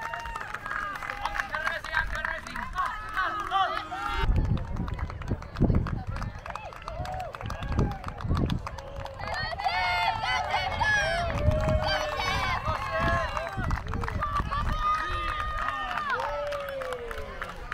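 A crowd of spectators shouts and cheers encouragement outdoors.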